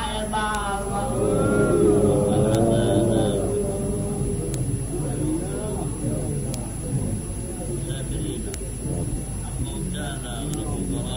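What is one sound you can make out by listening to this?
A middle-aged man speaks with emotion through a microphone.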